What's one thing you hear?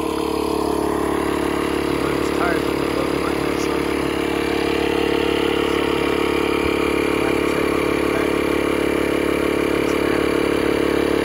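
A portable air compressor hums and rattles steadily close by.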